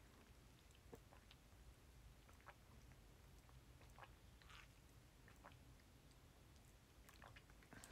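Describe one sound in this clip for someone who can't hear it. A young woman sips through a straw.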